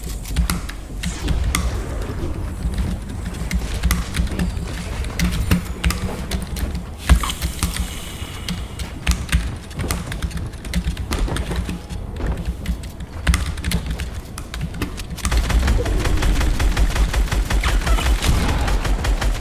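Footsteps thud on wooden floors.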